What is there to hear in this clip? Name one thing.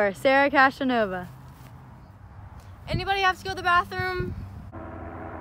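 A teenage girl speaks cheerfully close by.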